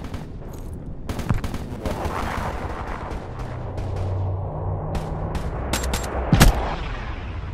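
Gunshots ring out in sharp bursts.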